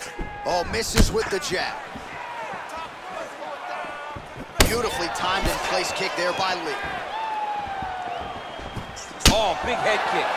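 Blows land with sharp, heavy thuds.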